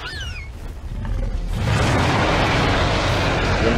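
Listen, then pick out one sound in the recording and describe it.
Large wings flap with a heavy whooshing rush of air.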